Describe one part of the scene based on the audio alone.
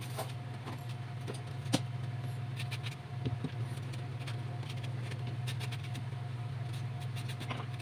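A knife scrapes and peels the skin of a vegetable.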